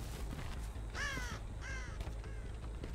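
A crow calls nearby.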